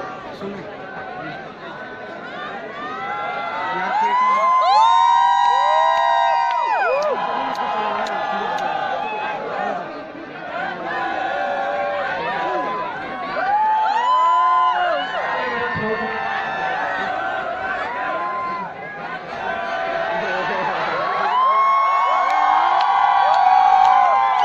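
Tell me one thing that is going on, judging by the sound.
An electric guitar plays loudly through speakers, with bending notes.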